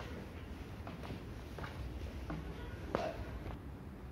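Footsteps knock on metal stair treads.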